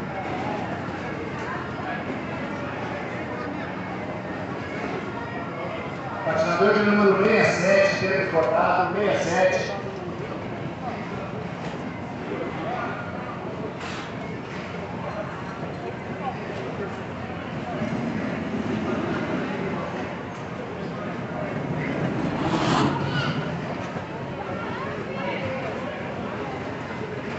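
Ice skates scrape and glide over ice.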